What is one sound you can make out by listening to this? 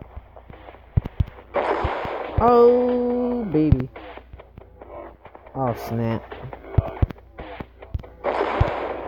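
A sniper rifle fires with sharp, loud cracks.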